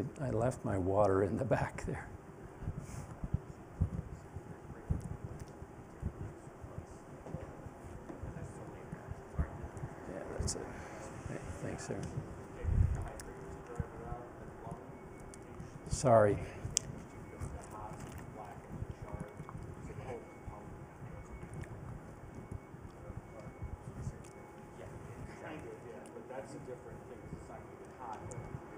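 An older man speaks calmly to an audience in an echoing hall.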